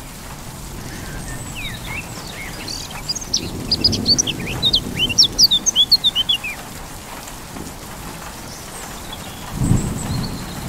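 Wind blows across an open field, rustling the crops.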